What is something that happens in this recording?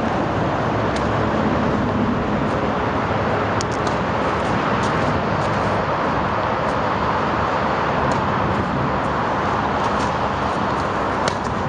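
A tennis ball is struck with a racket again and again, with sharp pops.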